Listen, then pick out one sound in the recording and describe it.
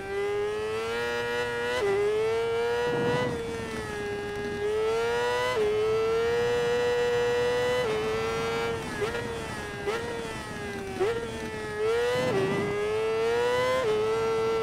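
A motorcycle engine screams at high revs, rising through the gears and dropping sharply at each shift.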